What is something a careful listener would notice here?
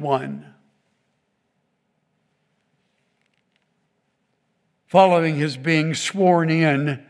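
An elderly man speaks into a microphone, reading out with expression.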